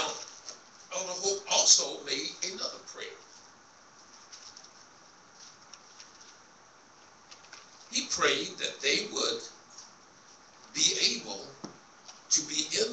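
A man speaks with emphasis into a microphone in a room with some echo.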